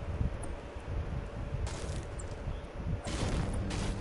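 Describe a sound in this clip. A pickaxe strikes a wall with dull thuds.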